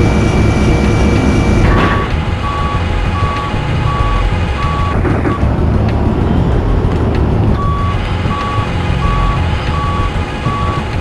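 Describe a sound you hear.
A forklift engine hums and rumbles steadily.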